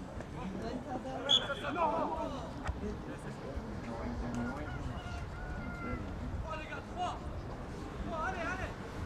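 Young men shout to each other outdoors across a playing field.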